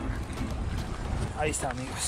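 Water laps against rocks.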